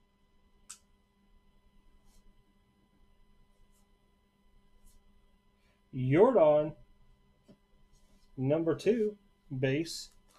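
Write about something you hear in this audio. Cards slide and shuffle against each other.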